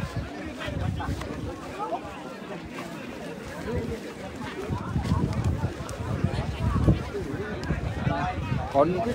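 Footsteps swish through grass close by.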